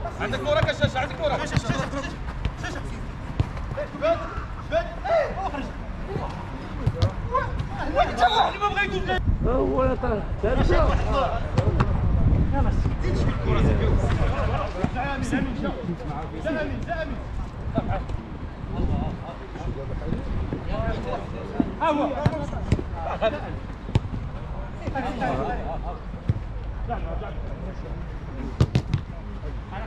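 Young men shout to each other outdoors during a football game.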